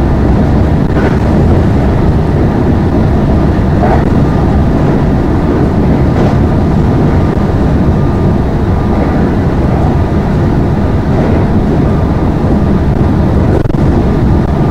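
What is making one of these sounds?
Train wheels click now and then over rail joints.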